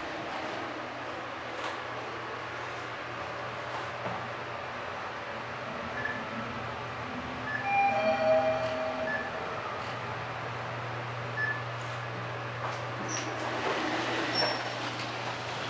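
An elevator car hums steadily as it rises.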